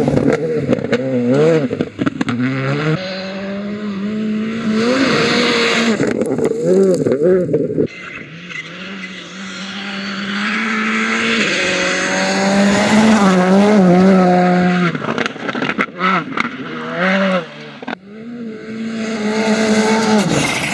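Gravel sprays and crackles under spinning tyres.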